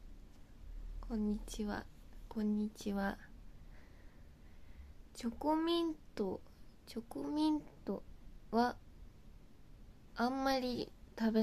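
A young woman speaks softly and cheerfully close to a microphone.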